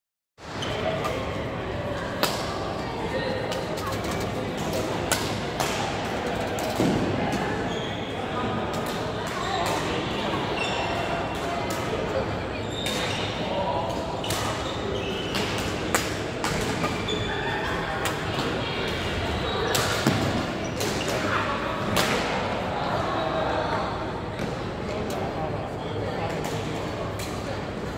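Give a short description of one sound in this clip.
Several people talk in a large echoing hall.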